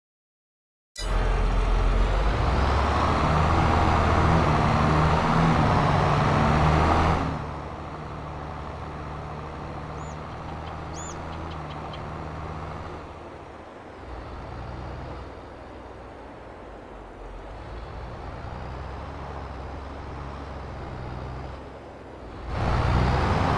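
A tractor engine rumbles steadily and revs.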